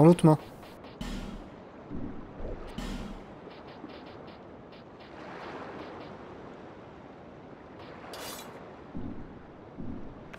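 A young man speaks quietly into a microphone.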